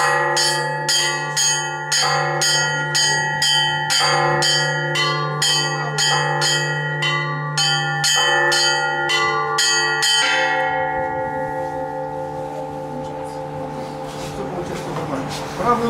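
Small bells ring in a quick, rhythmic pattern and their tones ring on and fade.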